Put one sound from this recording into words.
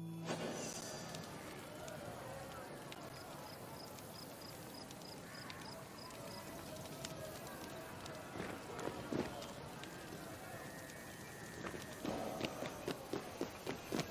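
Footsteps tap on a stone pavement.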